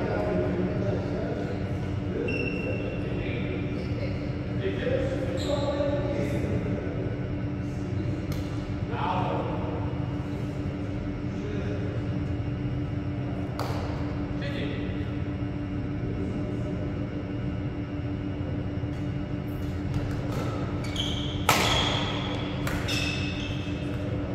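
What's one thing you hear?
Rackets hit a shuttlecock back and forth with sharp pops in a large echoing hall.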